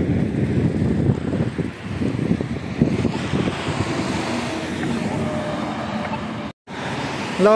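Traffic rumbles by on a nearby road.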